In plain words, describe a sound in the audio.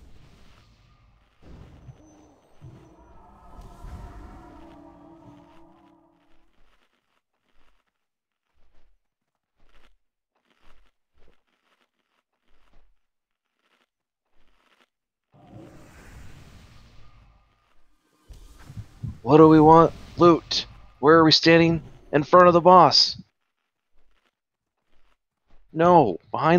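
Spell effects whoosh and crackle during a game battle.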